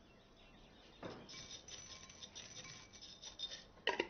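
Dry cereal rattles as it pours into a bowl.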